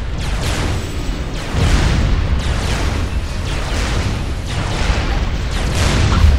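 Gunfire and laser blasts crackle rapidly in a battle.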